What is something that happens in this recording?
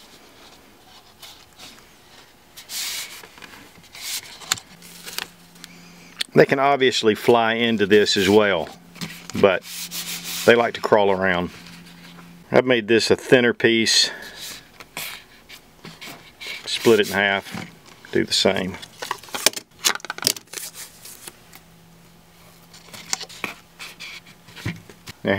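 Masking tape peels and crackles off a roll.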